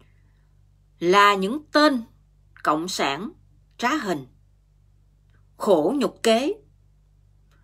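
A middle-aged woman speaks calmly and close up, in short phrases with pauses.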